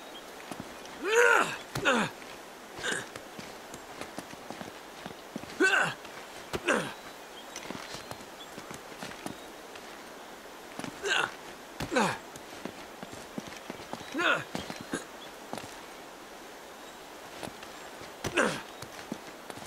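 Hands grab and scrape against rough stone while climbing.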